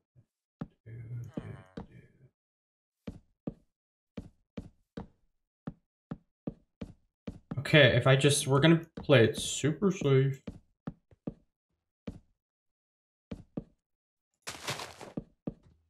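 Footsteps tread steadily over grass and wooden boards.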